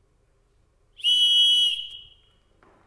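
A man blows a shrill whistle.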